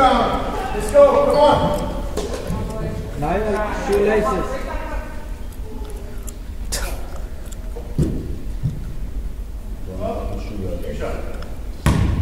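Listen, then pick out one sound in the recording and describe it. Young players shout and call out in a large echoing gym.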